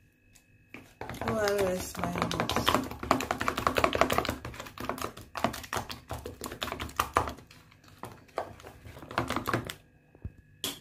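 A spoon scrapes and clicks against a plastic tub while stirring a thick paste.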